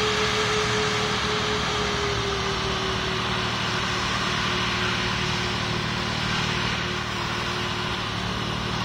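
A jet engine hums and whines steadily as an airliner taxis.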